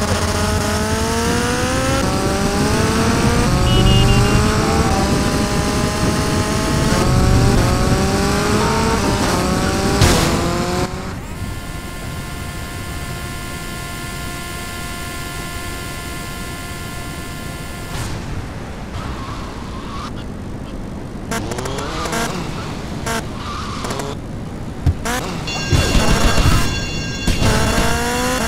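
A motorbike engine revs hard and climbs through the gears.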